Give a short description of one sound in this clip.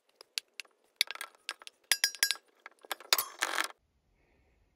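Dry flakes rustle as they are poured into a metal bowl.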